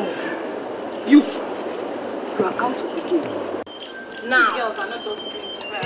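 Women argue loudly outdoors.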